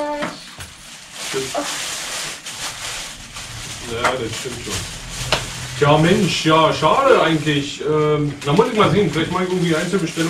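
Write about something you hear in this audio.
A man talks calmly into a phone nearby.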